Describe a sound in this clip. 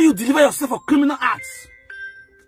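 A woman speaks loudly and with animation.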